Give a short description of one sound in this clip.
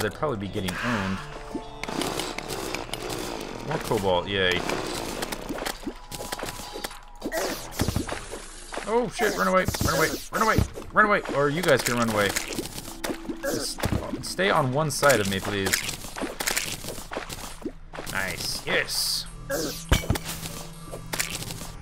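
Short game sound effects of weapon swings and hits pop in quick bursts.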